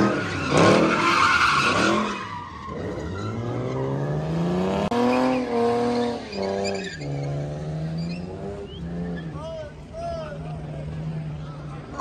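Car tyres screech as a car spins in place.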